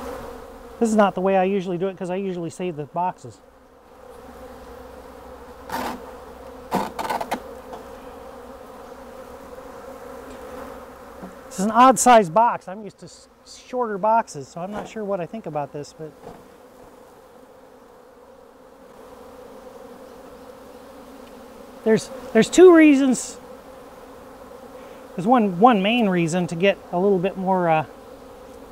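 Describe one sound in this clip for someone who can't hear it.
Bees hum in a steady drone.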